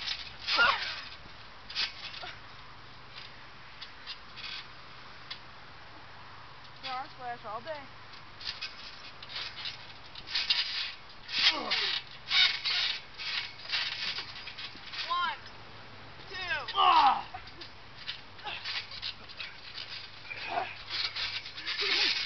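Teenage boys shout and laugh nearby outdoors.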